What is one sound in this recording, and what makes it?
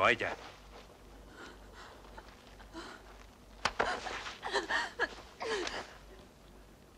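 A young woman speaks tearfully, close by.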